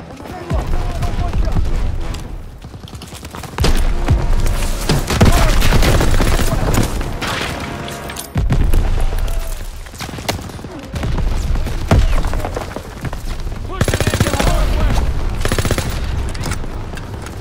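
Gunfire cracks and booms in rapid bursts.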